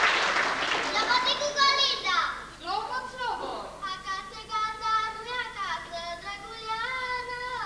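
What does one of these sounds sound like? A choir sings on stage in a large echoing hall.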